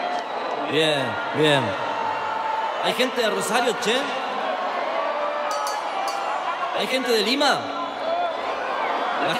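A large crowd cheers and screams loudly in a big echoing hall.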